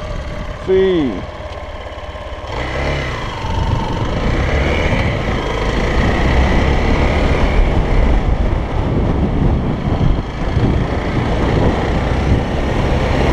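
A motorcycle engine revs and roars.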